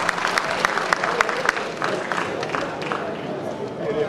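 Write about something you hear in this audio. Feet stomp rhythmically on a wooden stage in a large hall.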